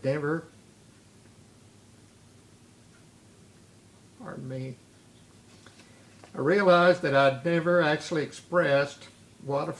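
An elderly man reads aloud calmly and close by, with pauses.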